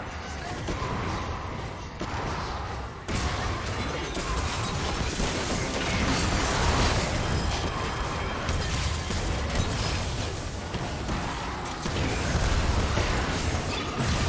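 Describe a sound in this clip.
Spell effects burst and crackle in a fast fight between game characters.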